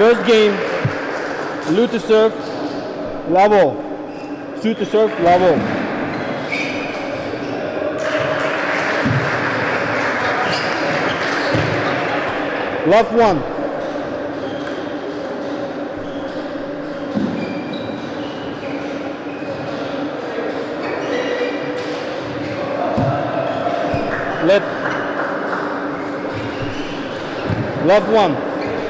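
A table tennis ball clicks back and forth between paddles and the table.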